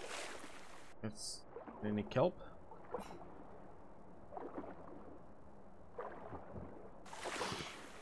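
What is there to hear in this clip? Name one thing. Water sloshes and gurgles, muffled as if heard underwater.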